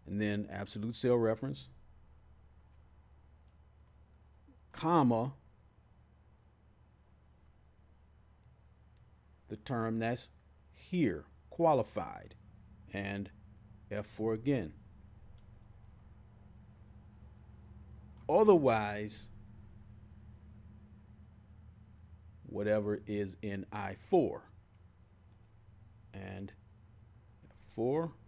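A man speaks calmly and closely into a microphone, in short bursts with pauses.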